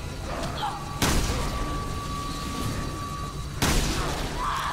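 A pistol fires sharp shots that ring out.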